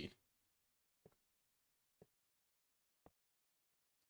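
Small blocks click softly as they are placed.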